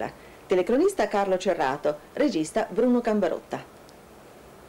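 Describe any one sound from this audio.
A woman speaks calmly and clearly into a microphone, close by.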